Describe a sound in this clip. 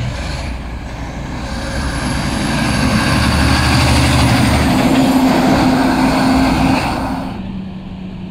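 A large truck roars close by and passes.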